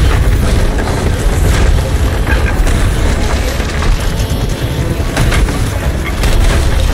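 Waves wash and rumble against a wooden ship's hull.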